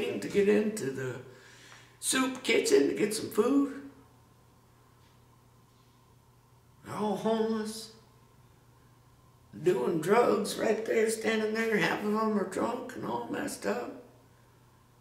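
A middle-aged man speaks calmly and close by, in short bursts with pauses.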